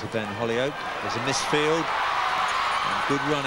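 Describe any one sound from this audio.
A large crowd cheers and murmurs in an open stadium.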